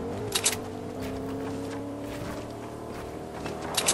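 Building pieces snap into place with clunks.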